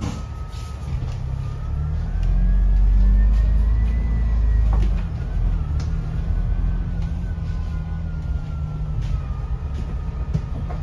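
A bus engine whines higher as the bus speeds up, then settles back down.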